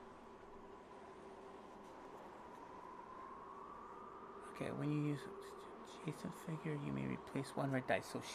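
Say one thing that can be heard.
Playing cards rustle softly in a hand.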